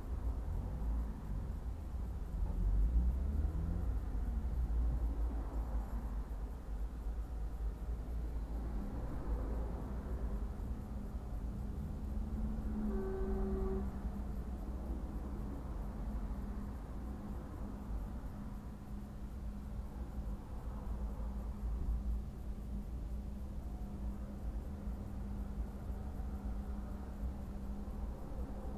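A car engine idles steadily close by.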